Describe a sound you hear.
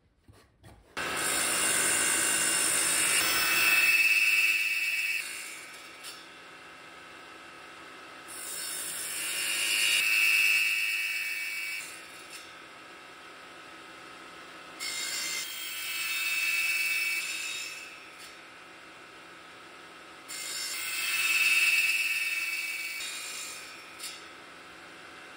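A woodworking saw machine runs with a steady hum.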